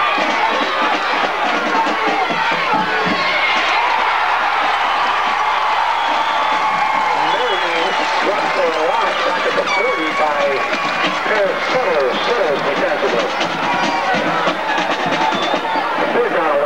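A crowd of spectators cheers and chatters loudly outdoors.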